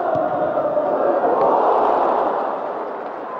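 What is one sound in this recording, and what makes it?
A large crowd roars loudly outdoors.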